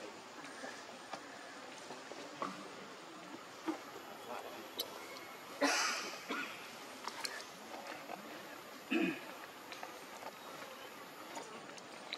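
A baby monkey squeaks and squeals close by.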